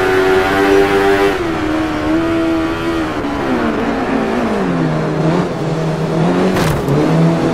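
A motorcycle engine revs high and shifts through gears.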